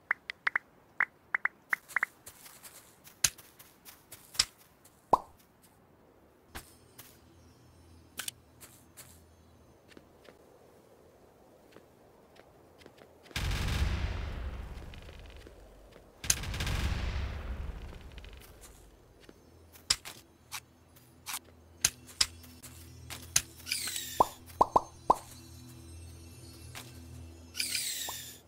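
Game blocks click sharply as they are broken and placed.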